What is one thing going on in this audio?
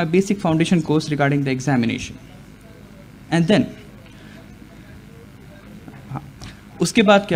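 A young man speaks into a microphone, with pauses.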